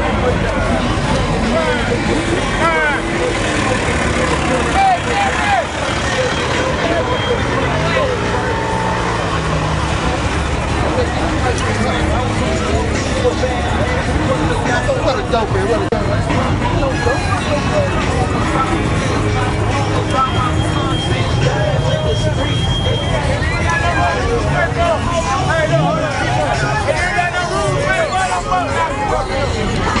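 A crowd of men and women chatters and calls out nearby outdoors.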